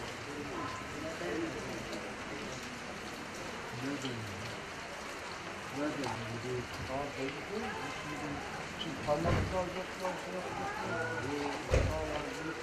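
Several men talk nearby in low, calm voices.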